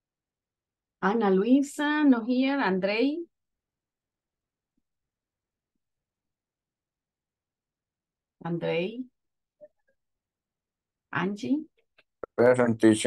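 A middle-aged woman speaks calmly in short bursts over an online call.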